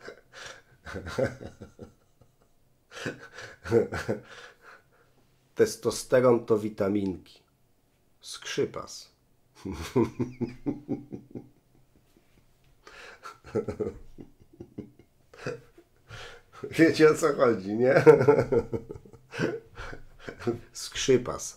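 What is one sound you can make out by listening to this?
A man talks with animation into a close microphone, pausing now and then.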